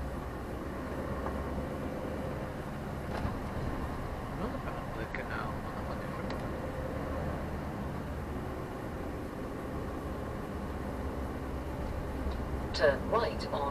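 Passing cars swish by on the road.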